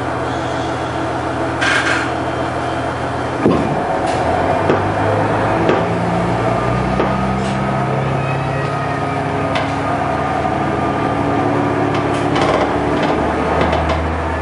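A train's diesel engine hums steadily and rises in pitch as it pulls away.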